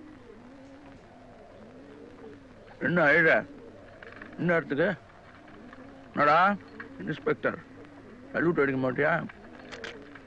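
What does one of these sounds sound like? Pigeons coo nearby.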